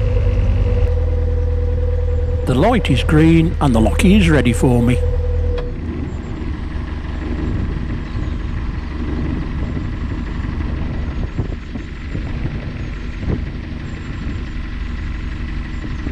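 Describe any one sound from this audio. A boat engine hums steadily at low pitch.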